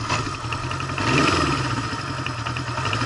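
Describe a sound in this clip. A motorcycle engine revs briefly.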